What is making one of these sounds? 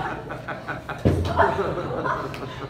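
A person thuds onto the floor.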